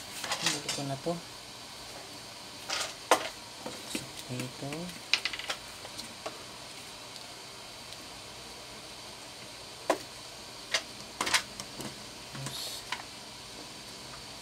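A circuit board clicks and taps softly as it is handled.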